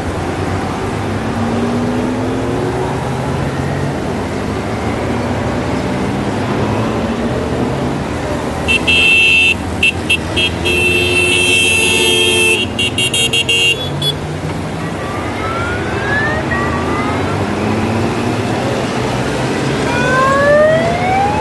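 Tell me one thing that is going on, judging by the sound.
Motorcycle engines rev up and down as bikes accelerate away.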